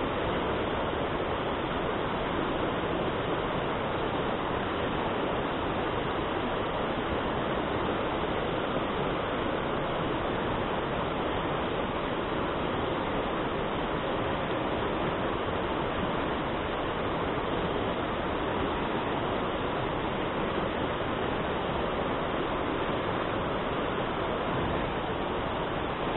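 A fast river rushes and splashes over rocks close by, steady throughout.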